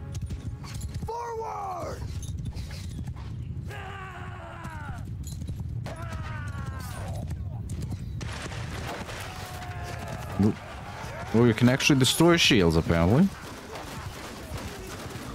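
Horse hooves thud steadily at a gallop over soft ground.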